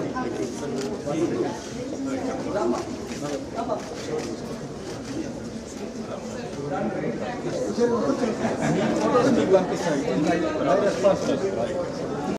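A crowd of men and women chatters close by indoors.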